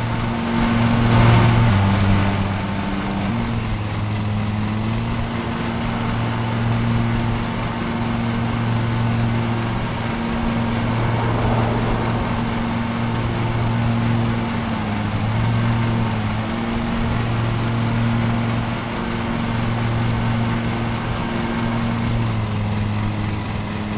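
A ride-on mower engine hums steadily, its pitch dipping and rising.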